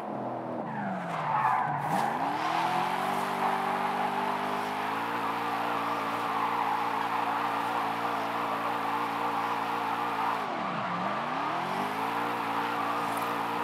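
Tyres screech and squeal as a car drifts.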